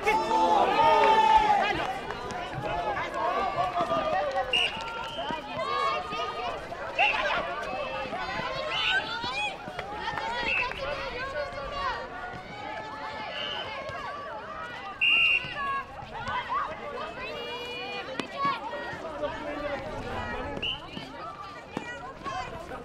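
Young women and men shout and call to each other.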